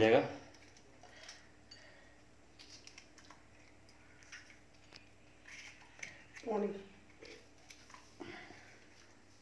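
A knife cuts through crisp bell pepper with soft clicks.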